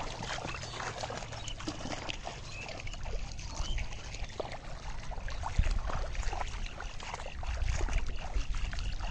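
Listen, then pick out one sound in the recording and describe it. Feet splash and slosh through shallow muddy water.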